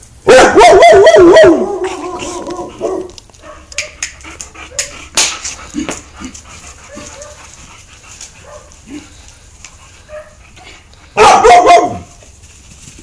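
A dog barks and growls loudly close by.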